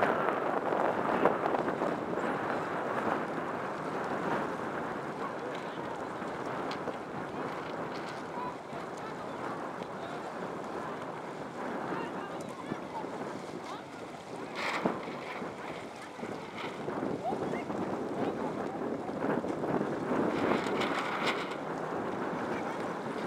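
Small waves lap and splash against a board.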